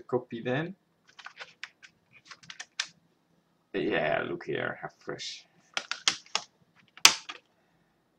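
A plastic disc case clicks and rattles as it is handled and opened.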